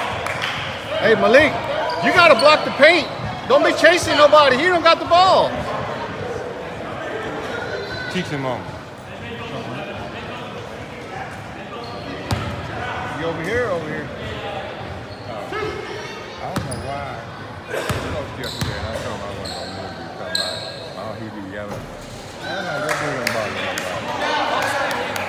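Young men talk and call out loudly in a large echoing hall.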